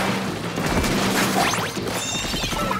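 A loud wet splattering burst erupts.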